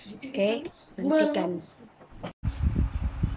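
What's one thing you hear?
A young girl speaks close up with animation.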